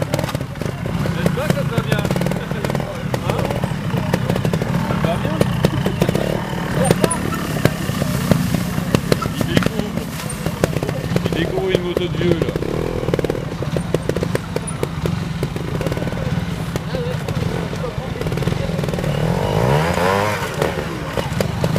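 Motorbike tyres crunch over dry leaves and rocks.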